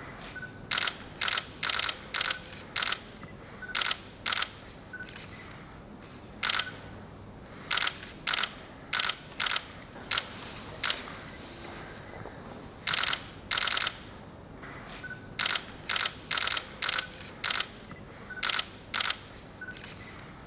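A woman speaks softly in greeting nearby.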